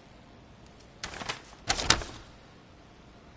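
A cat scratches loudly at a wooden crate.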